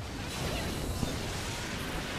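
A sharp impact hits.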